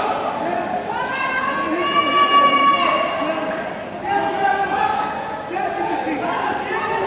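A crowd of spectators shouts and chants in a large echoing hall.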